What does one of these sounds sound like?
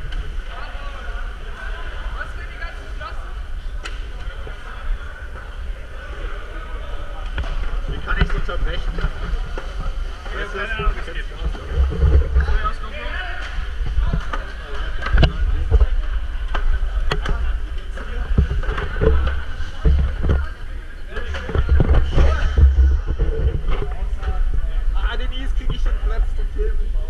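Many people talk at once, their voices echoing in a large hall.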